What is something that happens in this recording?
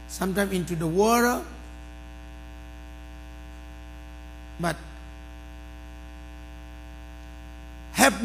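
A middle-aged man preaches with animation through a microphone in a large echoing hall.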